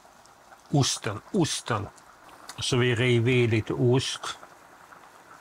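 A man talks animatedly close to a microphone.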